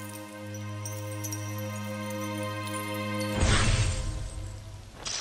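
A magical blade hums with a steady ringing tone and then bursts.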